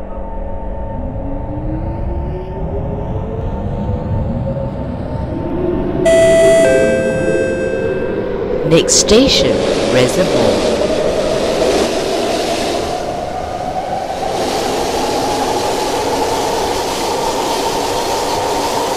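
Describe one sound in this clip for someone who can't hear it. Train wheels rumble and roar along the rails in a tunnel.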